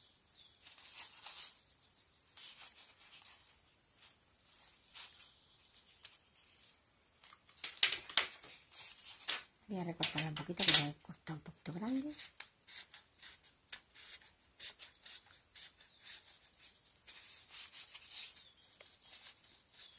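Soft foam sheet rustles and creaks as hands fold it around a ball.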